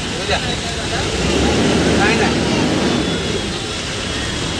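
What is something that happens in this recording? A large bus rumbles past close by, swelling and fading.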